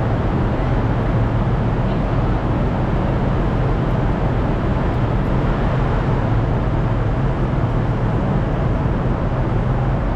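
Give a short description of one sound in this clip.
A train engine idles with a steady low rumble.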